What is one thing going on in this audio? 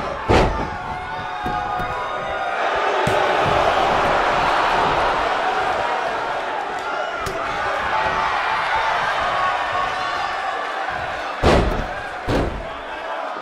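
Heavy thuds of bodies hit a wrestling ring mat.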